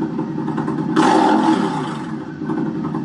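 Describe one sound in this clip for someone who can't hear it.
A motorcycle engine revs up sharply and drops back.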